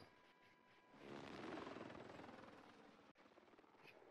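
A helicopter's rotor whirs faintly in the distance.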